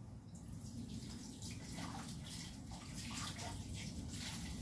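Dishes clink in a sink.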